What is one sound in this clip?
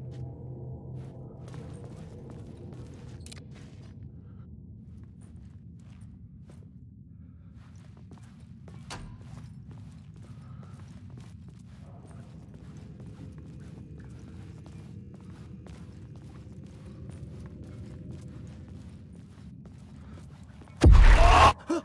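Footsteps crunch slowly on gravel in an echoing tunnel.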